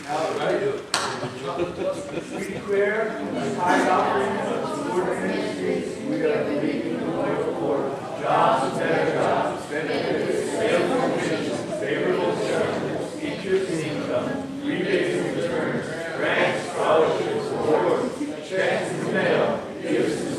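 A group of men and women sing together through loudspeakers in a large echoing hall.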